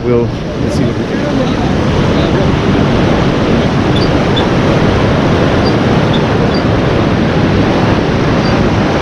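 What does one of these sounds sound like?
Strong wind buffets and roars outdoors.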